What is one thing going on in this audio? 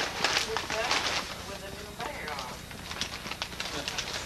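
Paper rustles as a gift is unwrapped.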